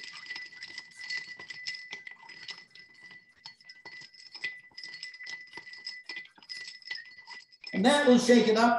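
Ice rattles in a cocktail shaker being shaken hard.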